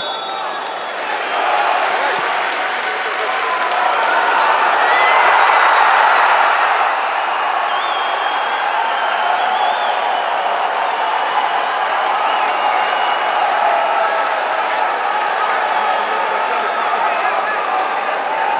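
A large stadium crowd roars and cheers, swelling loudly and then settling into a steady din.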